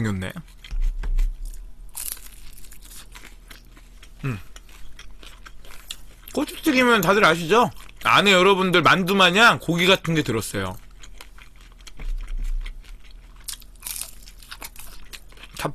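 A young man chews food wetly close to a microphone.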